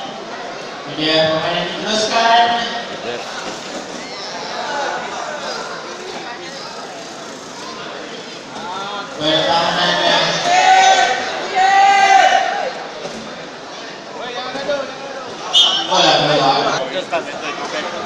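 A man speaks loudly nearby.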